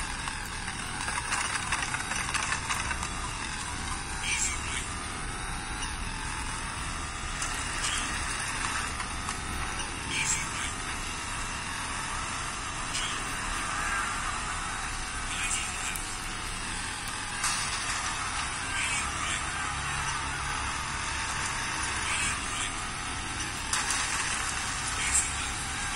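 A racing game's engine roars and tyre skids play through a small loudspeaker.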